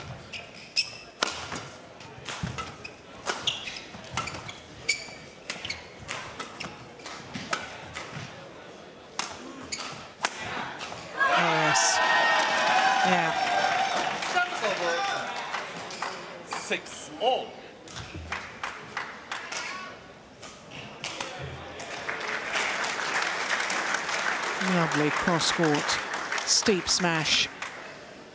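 A racket strikes a shuttlecock sharply, back and forth.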